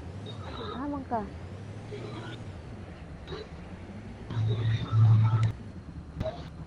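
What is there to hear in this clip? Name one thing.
A person talks animatedly through a microphone.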